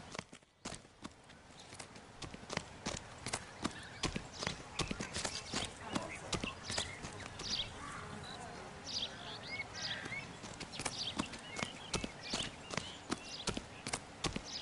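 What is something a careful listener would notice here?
Footsteps crunch quickly over dry grass.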